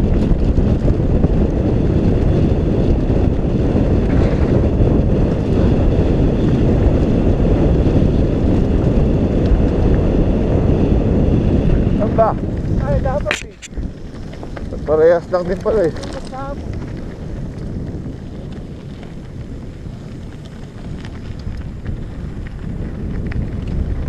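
Wind roars loudly over a moving rider.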